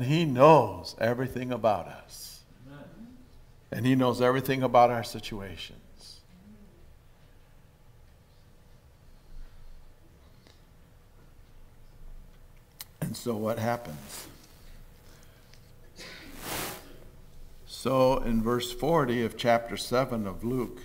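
A middle-aged man speaks slowly and deliberately through a microphone, with long pauses.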